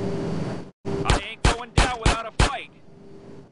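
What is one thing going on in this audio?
Gunshots bang in quick succession.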